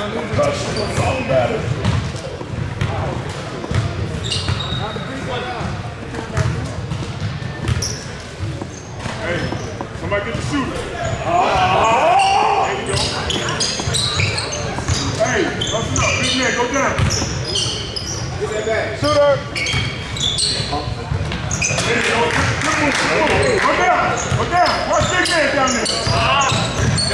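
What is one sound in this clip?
Basketball sneakers squeak sharply on a hard court in a large echoing hall.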